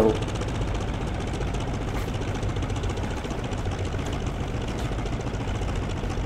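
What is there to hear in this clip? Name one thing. A propeller engine drones steadily with a low rumble.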